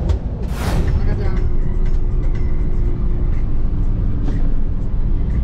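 A bus drives along a highway with a steady road rumble.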